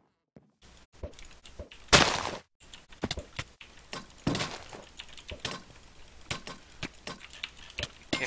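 Sword hits land in a video game fight.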